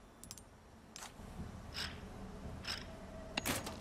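A metal wrench clanks against a metal panel.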